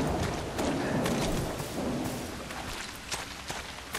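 Footsteps tread on rough ground.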